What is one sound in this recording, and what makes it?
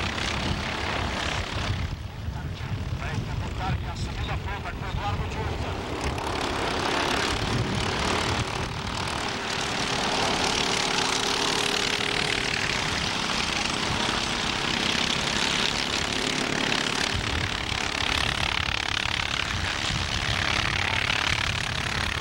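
Kart engines buzz and whine as karts race around a track.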